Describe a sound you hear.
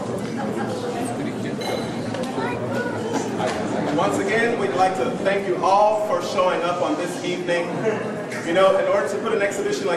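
An elderly man talks cheerfully nearby.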